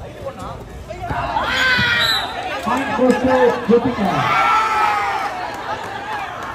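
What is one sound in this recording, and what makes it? A crowd of young men cheers and shouts outdoors.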